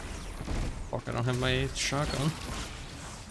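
An energy blast crackles and roars.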